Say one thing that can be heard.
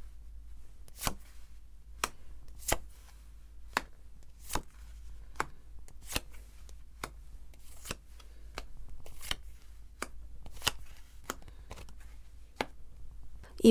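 Cards are laid down one by one with soft, crisp taps on a cloth-covered table.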